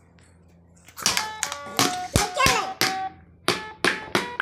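A stick strikes a toy drum in quick, sharp hits.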